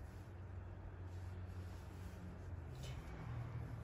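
A small dog shifts softly on a cushion.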